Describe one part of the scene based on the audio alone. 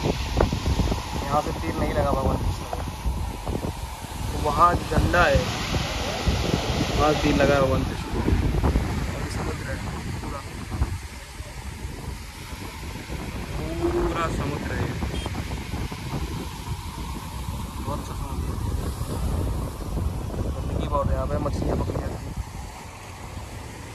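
Waves break and wash onto a shore.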